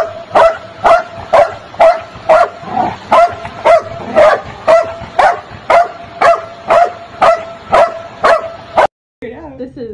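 A dog barks repeatedly in a quick, even rhythm.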